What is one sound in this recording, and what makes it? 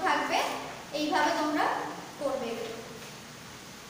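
A young woman speaks clearly and steadily, close by.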